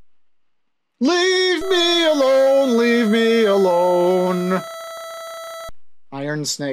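A video game's electronic tones sound as a message types out.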